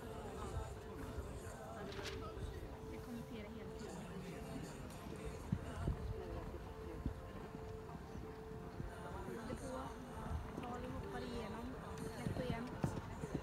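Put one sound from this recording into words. A horse canters with dull hoof thuds on soft sand.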